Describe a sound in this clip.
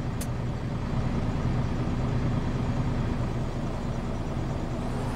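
A bus engine hums low and steadily.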